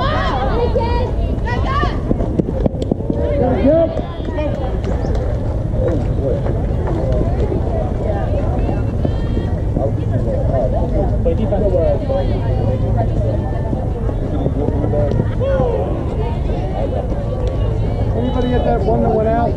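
Young players call out and chatter across an open outdoor field.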